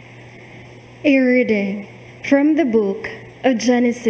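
A woman reads out through a microphone.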